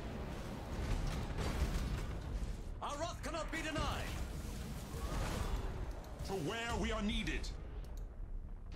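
A deep rumble of battle drones on steadily.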